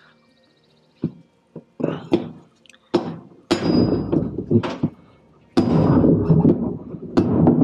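A hammer strikes a metal rod with sharp, ringing blows.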